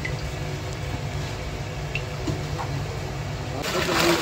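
Small fish flap and wriggle in a net.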